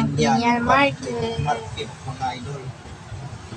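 A young woman speaks close by.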